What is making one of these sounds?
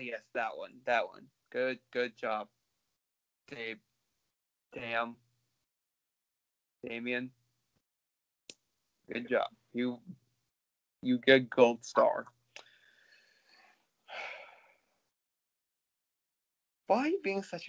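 A young man talks casually over an online call.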